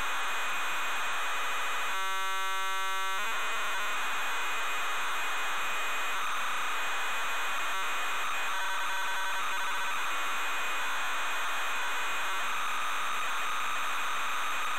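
A ZX Spectrum loads a program from cassette tape with a harsh, steady data screech.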